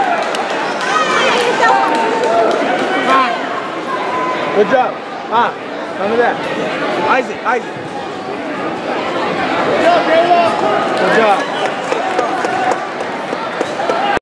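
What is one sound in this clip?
A large crowd chatters and shouts in an echoing hall.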